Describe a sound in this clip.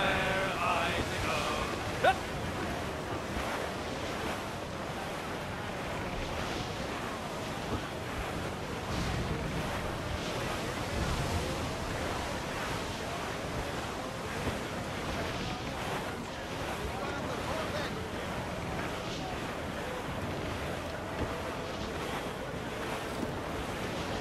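Wind blows steadily through sails and rigging.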